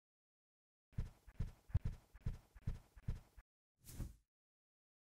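Light footsteps tap across the floor.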